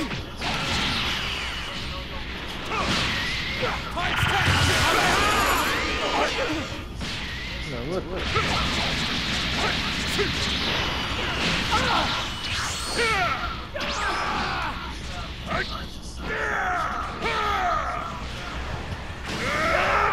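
Fighters grunt and shout with each attack.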